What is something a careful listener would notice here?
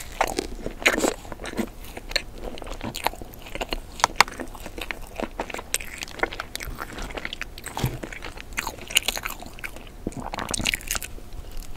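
A doughnut crackles as sprinkles crunch and it is torn apart.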